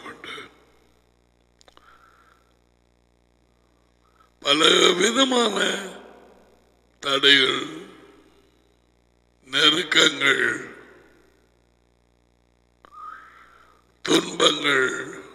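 A man speaks with animation close to a headset microphone, in bursts with pauses.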